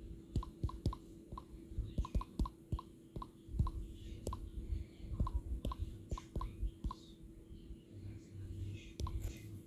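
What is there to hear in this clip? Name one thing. Keyboard taps click quickly and unevenly, each with a short high beep.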